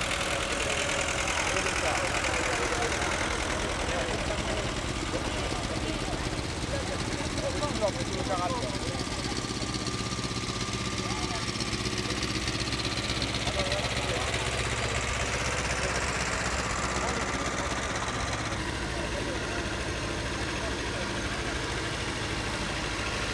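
Old tractor engines chug and rumble steadily outdoors.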